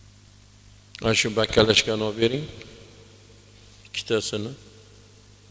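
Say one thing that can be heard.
An elderly man speaks calmly into a microphone in short bursts.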